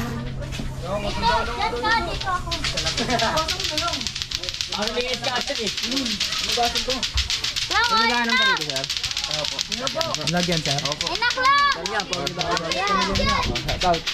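Boys talk and shout excitedly close by.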